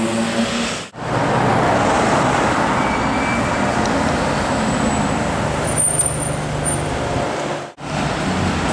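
A sports car engine rumbles as the car drives slowly past.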